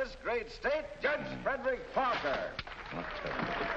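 A man speaks loudly through a loudspeaker in a large hall.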